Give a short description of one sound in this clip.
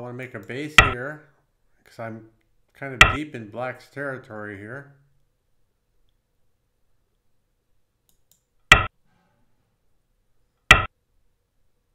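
A game stone clicks sharply onto a board a few times.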